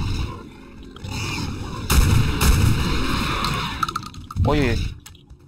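A creature growls and snarls up close.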